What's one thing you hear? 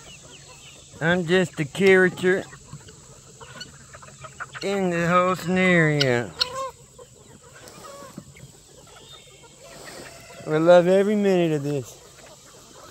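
Roosters crow loudly nearby.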